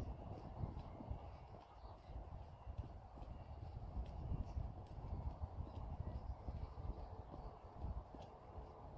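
A boy taps a football with his feet in quick touches.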